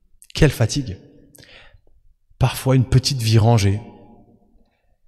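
A young man speaks with animation into a microphone in an echoing hall.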